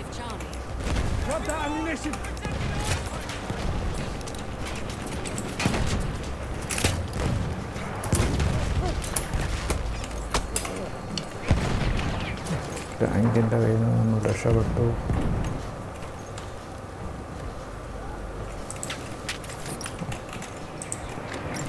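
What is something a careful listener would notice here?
Explosions boom and rumble in the distance.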